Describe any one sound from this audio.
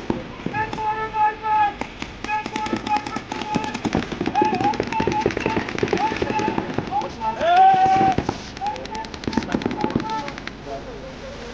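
Paintball guns fire in rapid bursts of sharp pops outdoors.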